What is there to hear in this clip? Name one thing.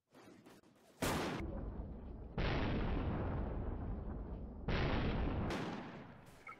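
A sniper rifle fires sharp cracks that ring out and fade.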